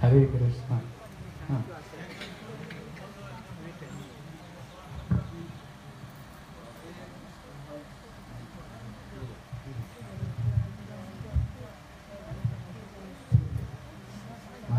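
A crowd of men and women murmurs quietly nearby.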